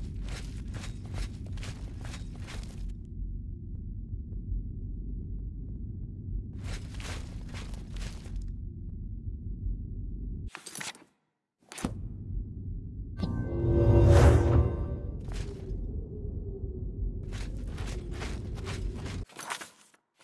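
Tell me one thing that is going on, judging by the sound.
Footsteps clatter on a stone floor.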